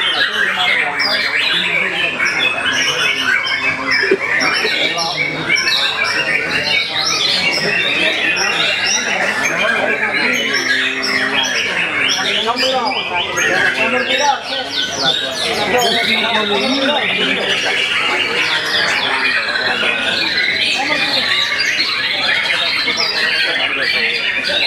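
A songbird sings loud, fast, varied trills and whistles close by.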